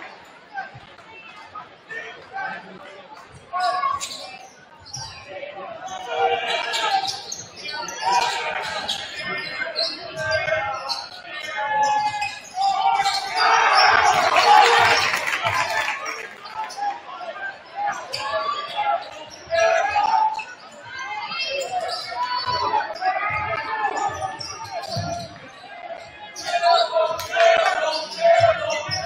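A crowd in a large echoing gym cheers and shouts, swelling loudest midway.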